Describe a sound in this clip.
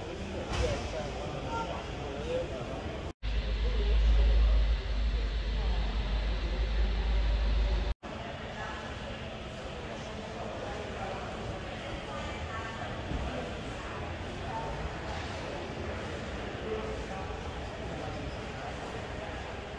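A crowd of men and women chatters quietly in a large echoing hall.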